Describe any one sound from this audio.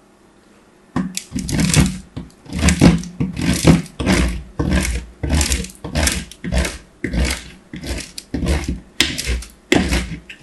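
A chalky bar is rubbed hard across a grater in quick, crunchy strokes.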